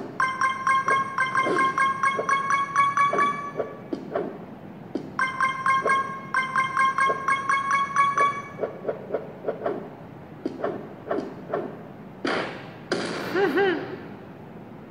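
Fingers tap and swipe on a phone's glass.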